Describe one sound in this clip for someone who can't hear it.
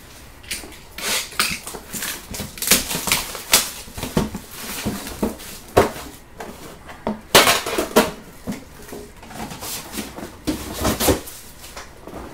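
Plastic wrapping crinkles and tears as hands open a pack.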